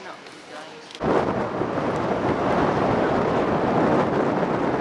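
Wind blows hard outdoors by open water.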